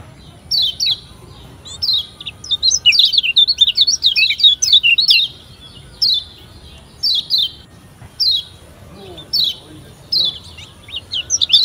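A small bird chirps and trills in quick, high bursts.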